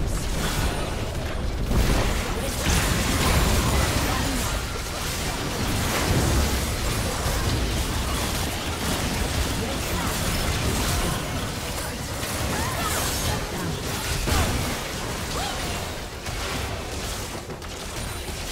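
Video game spell blasts and impacts crackle and boom in a busy battle.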